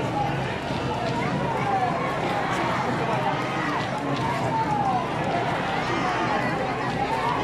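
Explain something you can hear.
A large crowd chatters and cheers loudly outdoors.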